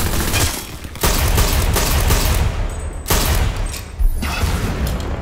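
Rapid gunfire rattles in an echoing tunnel.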